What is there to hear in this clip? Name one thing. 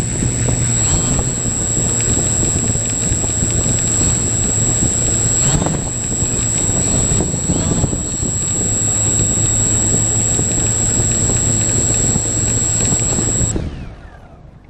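Small electric motors whine steadily and close by as propellers spin, then cut off.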